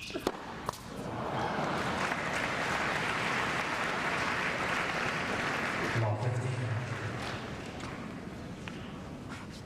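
A large crowd cheers and applauds loudly, then dies down.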